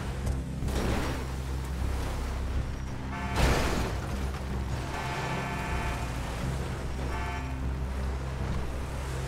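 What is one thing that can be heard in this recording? An off-road pickup truck's engine labours up a dirt slope in a video game.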